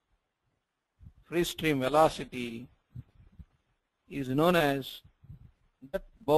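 A man speaks calmly and clearly into a microphone, as if explaining.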